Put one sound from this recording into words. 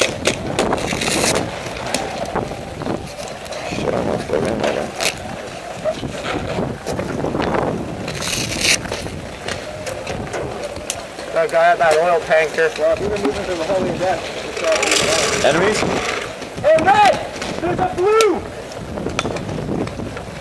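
Paintball markers fire in sharp bursts of pops nearby.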